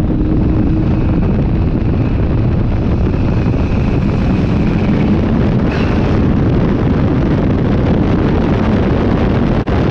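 A race car engine roars loudly at close range.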